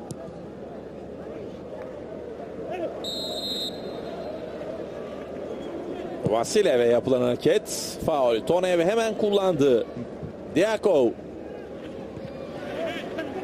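A stadium crowd murmurs and roars steadily in the distance.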